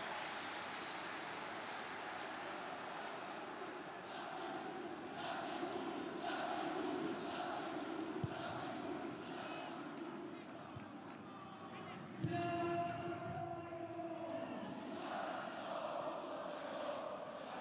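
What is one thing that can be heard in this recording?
A large stadium crowd chants and cheers steadily outdoors.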